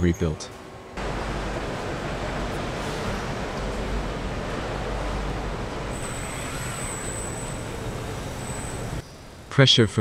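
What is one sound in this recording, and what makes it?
Factory machinery hums steadily.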